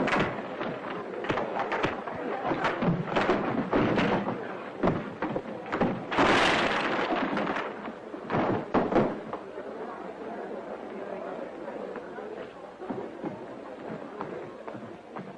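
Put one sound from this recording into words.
Fists thump and bodies crash as men brawl.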